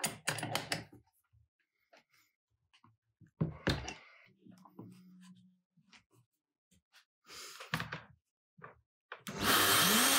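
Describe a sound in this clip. Metal parts click and clatter as a router is adjusted by hand.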